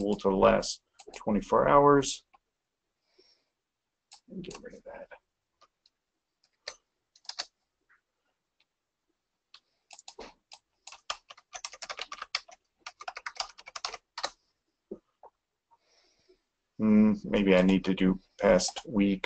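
An adult man speaks calmly into a close microphone, in short bursts.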